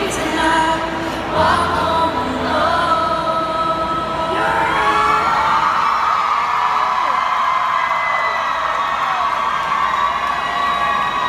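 A piano plays through loudspeakers in a large echoing hall.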